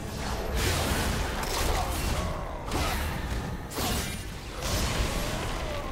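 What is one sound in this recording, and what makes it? Game spell effects burst and crackle during a fight.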